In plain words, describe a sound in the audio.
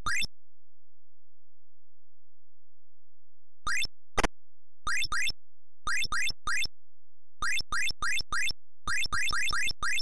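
Short rising electronic chirps sound again and again, like a game character hopping.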